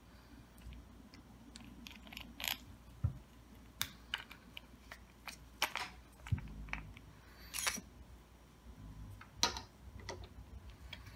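Small plastic and metal parts click and clack as a reel is taken apart by hand.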